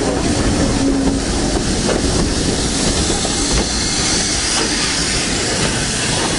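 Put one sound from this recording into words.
A train rumbles and clatters past close by.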